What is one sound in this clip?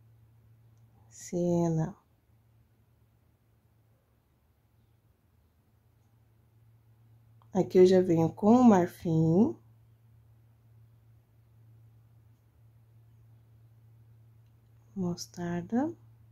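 A paintbrush strokes softly on canvas.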